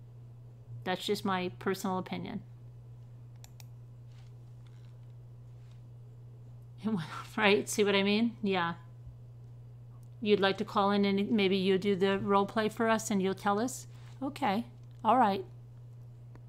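A woman speaks calmly and thoughtfully close to a microphone, with pauses.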